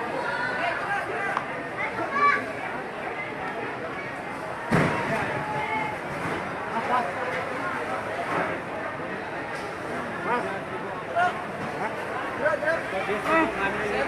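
A crowd of men talk and call out nearby.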